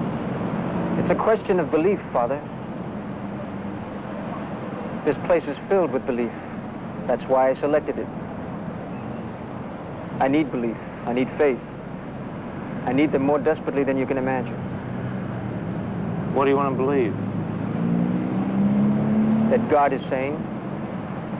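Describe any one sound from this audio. A young man speaks calmly and slowly, close by.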